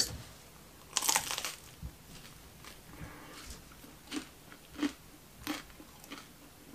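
A man bites into a crusty pizza slice and chews.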